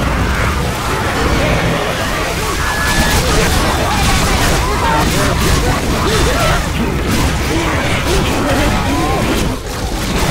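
Zombies snarl and growl close by.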